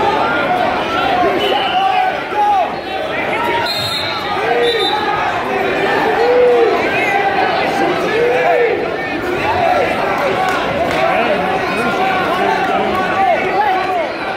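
Shoes squeak sharply on a mat.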